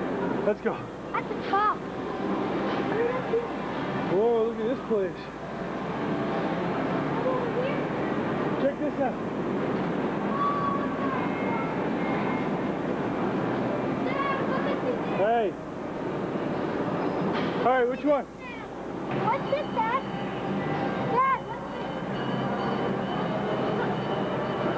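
A loud crowd chatters and clatters steadily in a large echoing hall.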